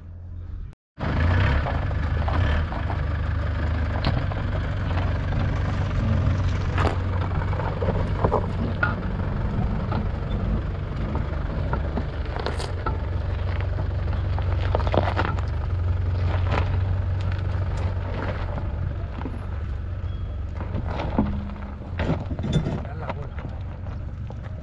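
An engine rumbles low and steady as a vehicle crawls over rough ground.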